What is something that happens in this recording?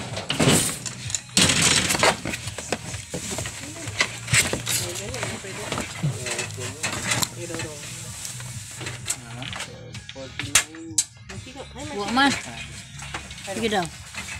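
Cardboard scrapes and thumps as a box is handled.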